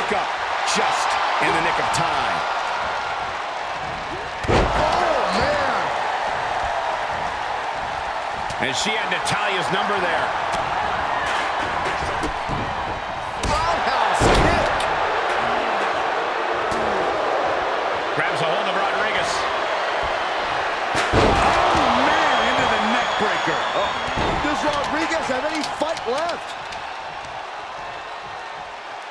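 A large crowd cheers and roars in a large arena.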